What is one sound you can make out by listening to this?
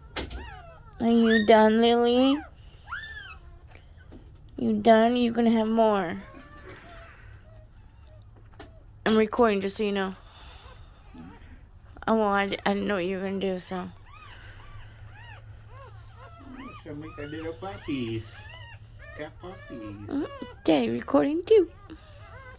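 Small puppies whine and cry loudly in short bursts.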